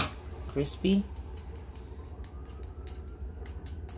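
A fork scrapes against fried chicken.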